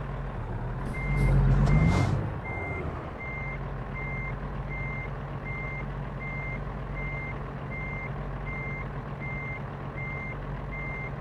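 A truck's reversing alarm beeps steadily at an even pace.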